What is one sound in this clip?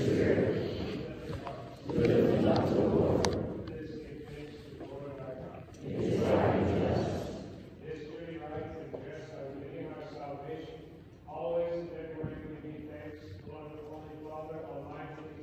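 A congregation sings together in a large, echoing hall.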